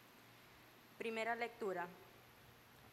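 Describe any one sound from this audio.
A young woman speaks briefly into a microphone, her voice close and strained.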